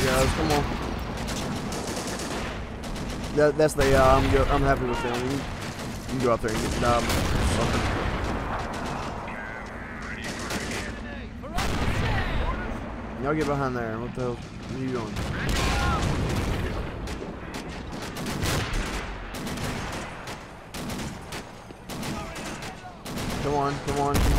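Guns fire in rapid bursts nearby.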